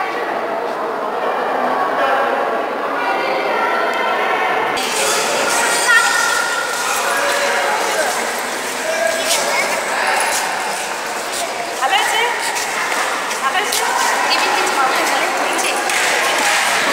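A crowd of men and women chatters loudly in a large echoing hall.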